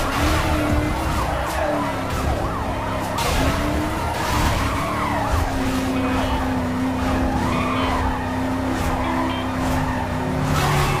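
Police sirens wail and rise and fall close by.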